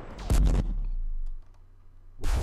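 A weapon fires with a loud energy blast.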